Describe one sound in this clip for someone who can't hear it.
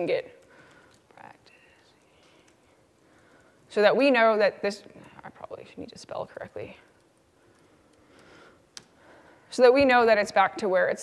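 A young woman speaks into a microphone with animation.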